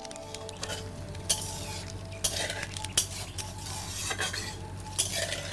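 Fingers mix rice on a metal plate.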